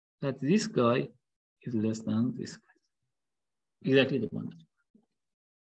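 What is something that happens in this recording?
A man speaks calmly into a close microphone, in short phrases.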